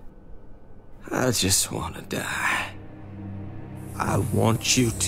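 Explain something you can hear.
An older man speaks in a low, tired voice.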